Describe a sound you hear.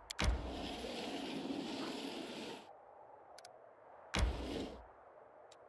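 A soft game sound effect swooshes.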